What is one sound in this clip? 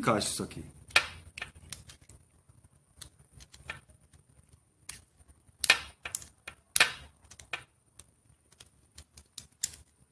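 Small metal tools click and tap against metal parts.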